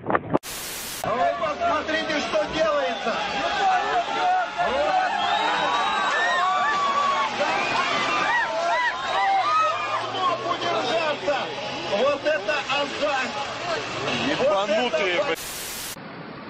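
A crowd of people shouts and cheers excitedly outdoors.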